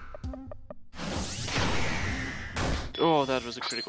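A heavy blow lands with a loud crash.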